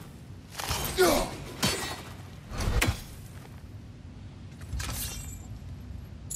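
A heavy axe whooshes through the air in quick swings.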